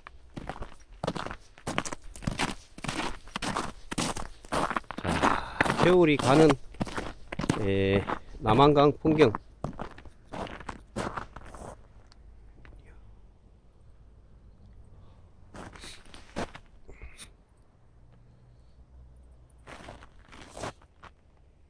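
Footsteps crunch on crusted snow and ice.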